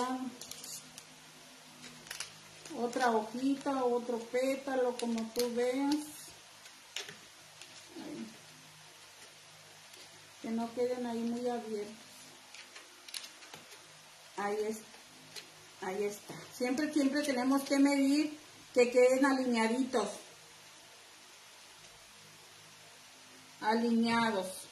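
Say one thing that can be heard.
A woman talks calmly and close by, pausing now and then.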